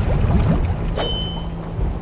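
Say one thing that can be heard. A blade whooshes through the air.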